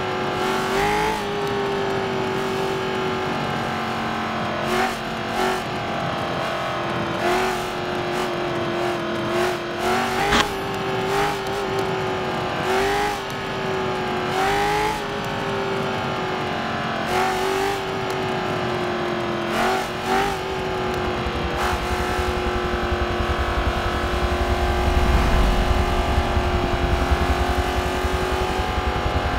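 A race car engine drones steadily, dipping briefly in pitch with each gear change.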